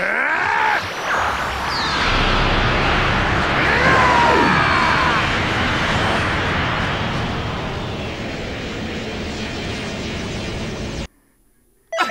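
A huge energy blast roars and crackles loudly.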